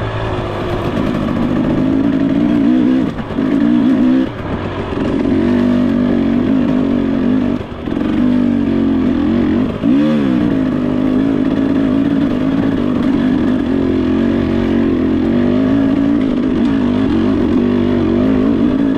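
A dirt bike engine buzzes steadily close by, rising and falling in pitch as the throttle changes.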